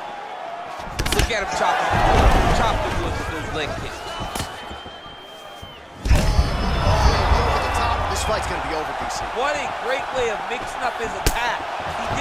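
A kick lands on a body with a heavy thud.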